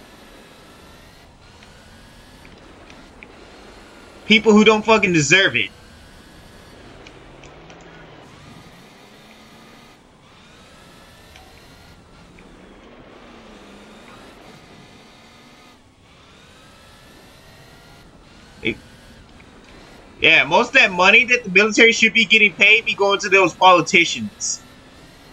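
A racing car engine revs up and down.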